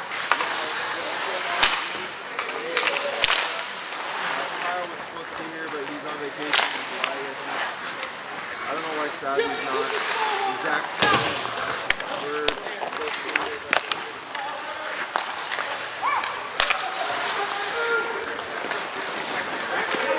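A crowd of spectators murmurs and calls out in a large echoing arena.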